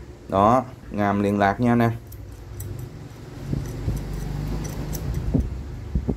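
Metal clicks softly as an adjustable wrench's jaw is slid open.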